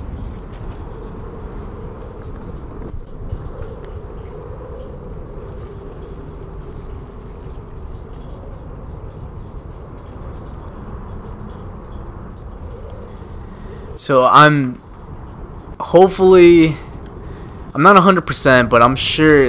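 A fire crackles softly in a brazier.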